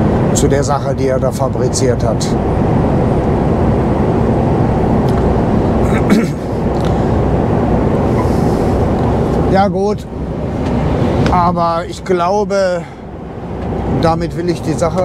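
A truck engine hums steadily while tyres roll on a wet road.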